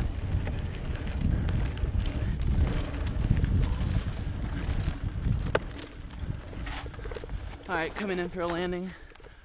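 A bicycle frame rattles and knocks over bumps.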